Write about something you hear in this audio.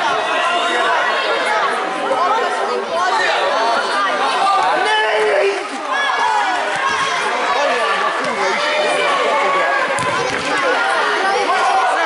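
Many children shout and call out in a large echoing hall.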